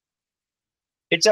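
A young man reads aloud into a microphone.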